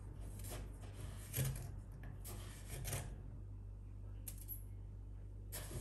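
Powder pours from a glass into a metal sink with a soft rustle.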